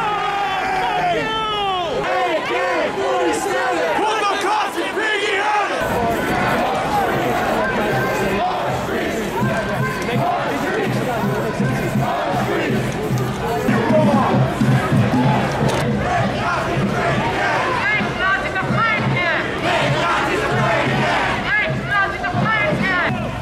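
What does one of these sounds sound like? A large crowd chants and shouts outdoors.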